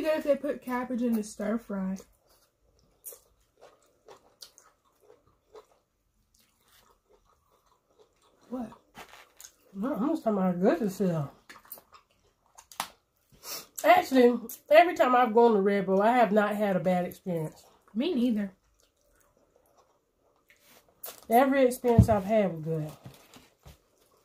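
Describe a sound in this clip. Food is chewed and slurped close to a microphone.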